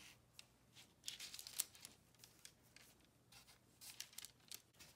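Parchment paper rustles and crinkles under hands.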